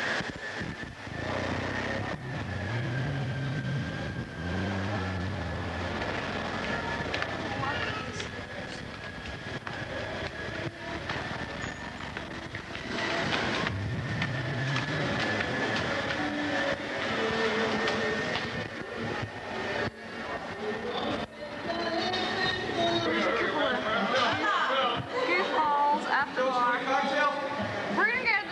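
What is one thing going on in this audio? A crowd chatters in a large echoing hall.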